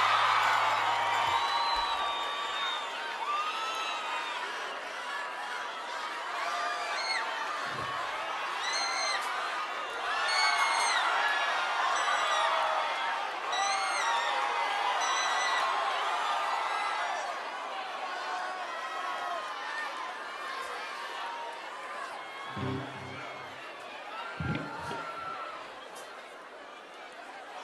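A large crowd cheers and shouts in a big hall.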